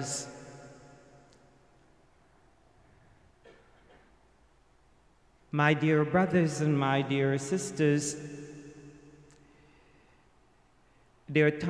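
An elderly man chants through a microphone in an echoing hall.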